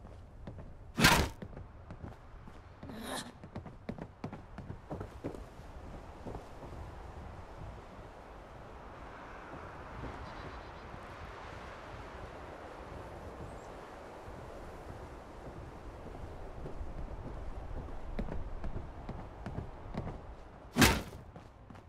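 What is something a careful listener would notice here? A door slams shut with a loud bang.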